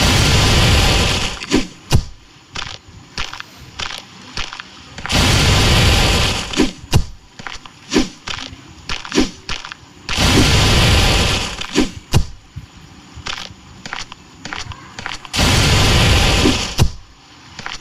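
Cannons fire with loud booming blasts, again and again.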